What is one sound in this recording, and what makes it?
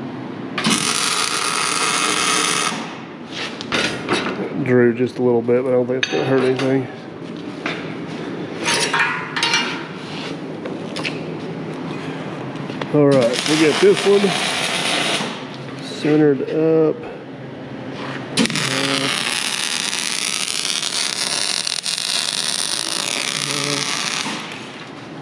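An electric welder crackles and hisses in bursts.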